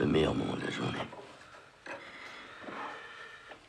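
Cutlery clinks lightly on a plate.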